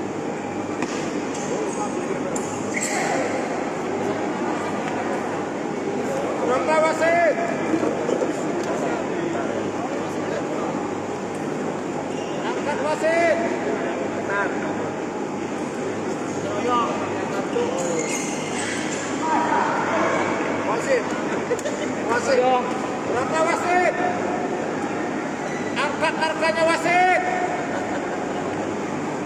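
A crowd murmurs and chatters steadily in a large echoing hall.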